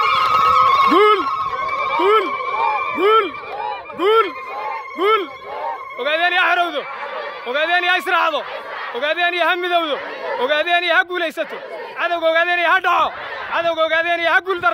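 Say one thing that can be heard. A crowd of men and women chants together in rhythmic shouts.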